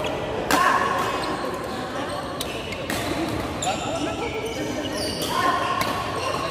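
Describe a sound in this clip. Badminton rackets hit a shuttlecock with sharp pops that echo around a large hall.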